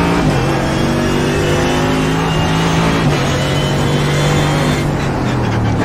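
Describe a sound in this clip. A race car engine roars loudly, its pitch climbing through the gears.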